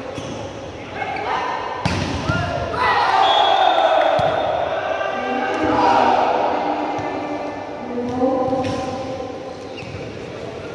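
Young men shout and call out to each other on the court.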